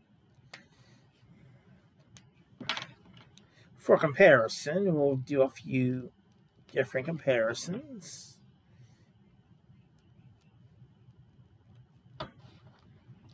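Small plastic parts click as a toy figure is handled.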